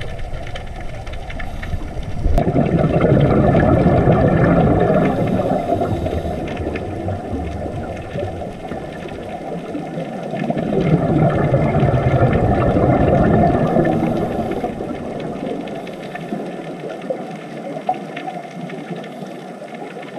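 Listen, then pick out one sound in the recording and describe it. Scuba divers' bubbles rumble and gurgle as they rise, heard underwater.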